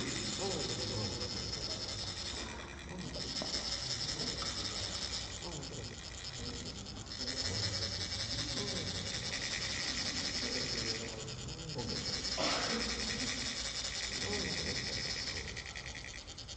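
Metal sand funnels rasp with a rapid, high scraping buzz, stopping and starting.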